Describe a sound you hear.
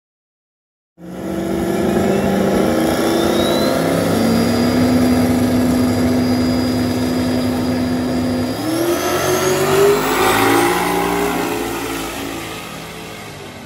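Race car engines roar loudly and rev up as the cars launch down the track.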